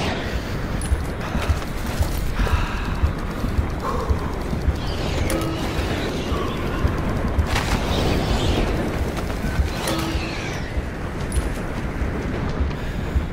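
Wind rushes past steadily and loudly.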